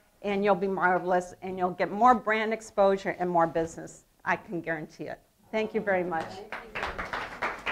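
A middle-aged woman speaks with animation to an audience.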